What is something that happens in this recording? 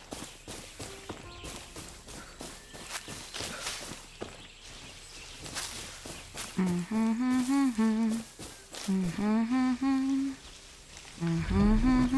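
Footsteps rustle through tall grass and bushes.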